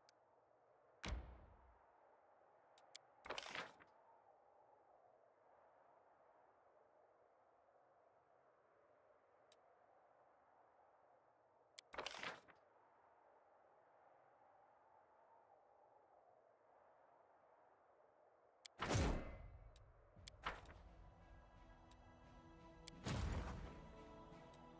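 Soft whooshing game interface sounds play as menus open and close.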